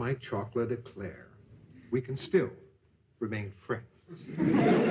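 A middle-aged man speaks gruffly nearby.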